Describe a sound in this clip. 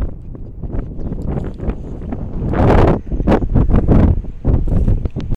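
Wind buffets the microphone outdoors in rough gusts.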